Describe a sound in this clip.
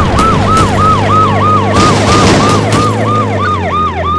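Cars crunch and crash as a tank rolls over them.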